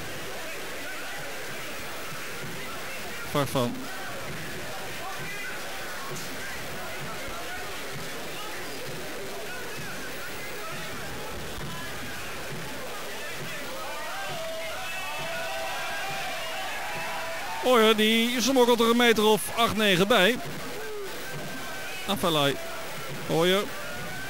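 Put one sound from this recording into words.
A large crowd murmurs and cheers steadily in an open stadium.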